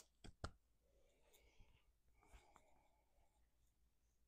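A young woman speaks softly up close.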